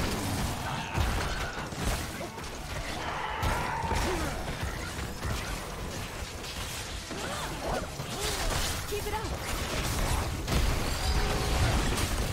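A young man talks into a microphone.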